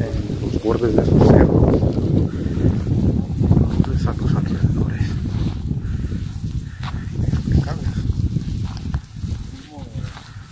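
Dry brush rustles and crackles as people push through it.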